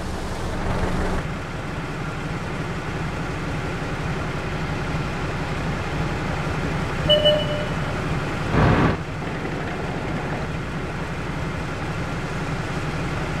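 A tank engine rumbles steadily.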